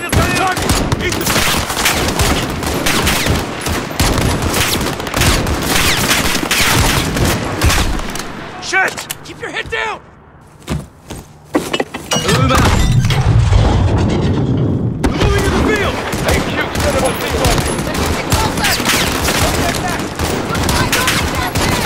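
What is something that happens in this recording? A rifle fires loud, sharp shots again and again.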